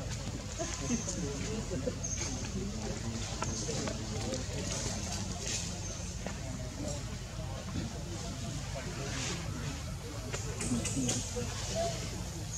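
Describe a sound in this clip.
A baby monkey suckles softly at close range.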